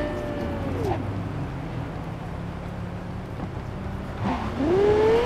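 Tyres hiss and skid on a wet road.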